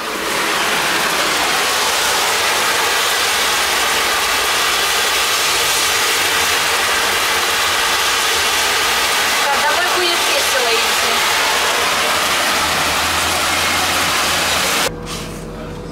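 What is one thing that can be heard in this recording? Hail pours down hard and drums loudly on a window.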